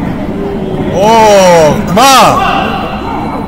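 Young women shout sharply in a large hall.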